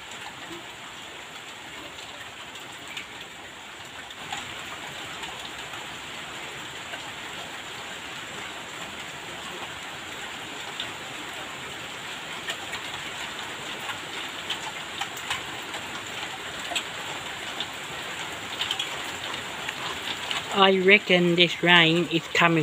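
Heavy rain falls steadily on wet concrete outdoors.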